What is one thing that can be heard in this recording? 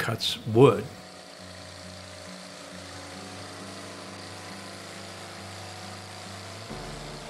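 A sawmill engine hums steadily as a saw cuts through a log.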